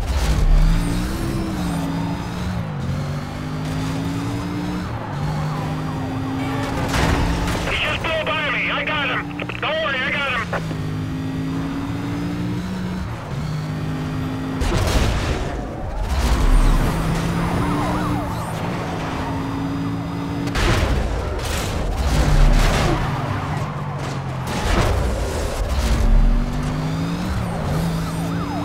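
A car engine roars and revs up through the gears.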